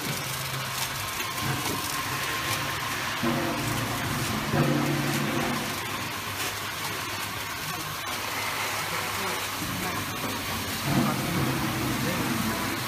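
A packaging machine hums and whirs steadily.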